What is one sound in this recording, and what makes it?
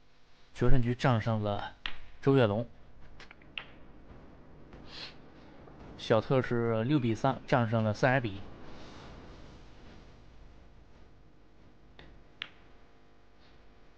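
Snooker balls click sharply against each other.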